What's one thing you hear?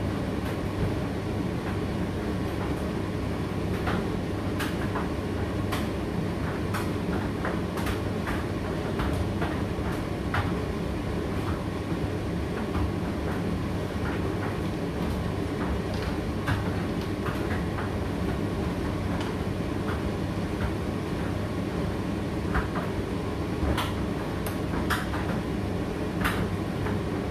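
A condenser tumble dryer runs with a steady low hum and rumble.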